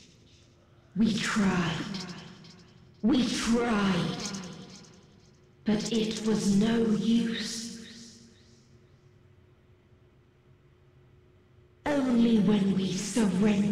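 A young woman speaks close to a microphone.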